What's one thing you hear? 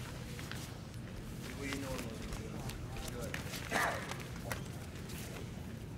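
Spectators talk and murmur nearby.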